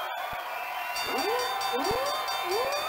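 A bright, chiming victory jingle plays.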